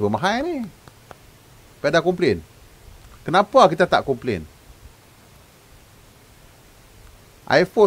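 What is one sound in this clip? A middle-aged man speaks calmly in bursts over a microphone.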